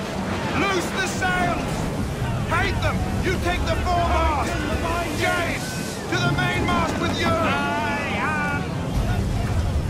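A man shouts orders loudly over a storm.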